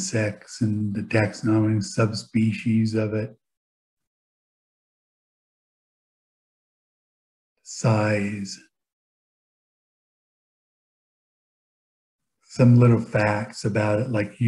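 A man speaks calmly and closely into a microphone, in short bursts with pauses.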